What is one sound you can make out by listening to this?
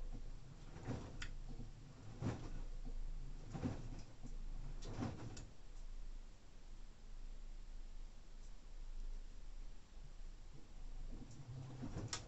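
A washing machine drum turns with a low steady hum.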